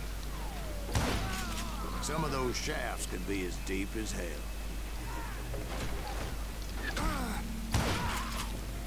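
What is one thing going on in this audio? A gun fires loud single shots.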